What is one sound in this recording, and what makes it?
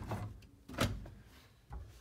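A wooden cabinet door clicks and swings open.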